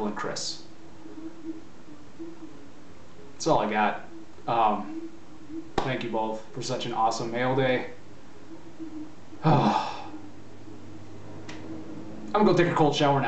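A young man speaks calmly and close up, with pauses.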